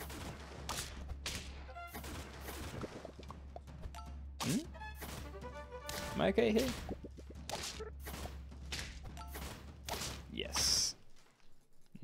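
Short cartoon sound effects pop and thump in quick succession.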